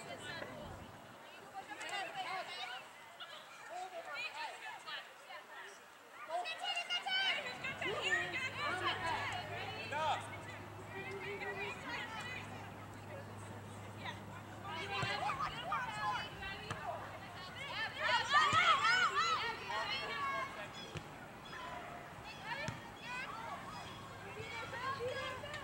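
Young women and girls shout and call out outdoors across an open field.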